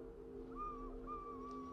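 Leaves rustle in a light wind outdoors.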